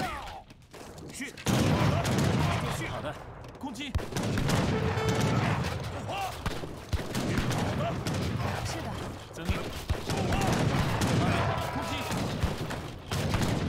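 Gunshots and clashing weapons of a small battle sound in the distance.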